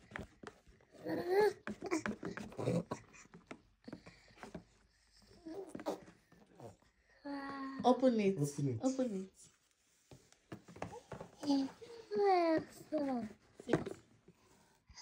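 A young child speaks softly nearby.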